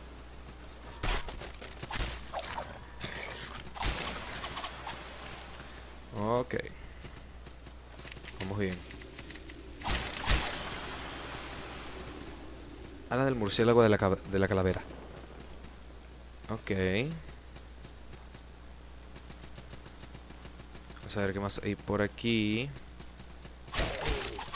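Game sound effects clash and thud in short bursts.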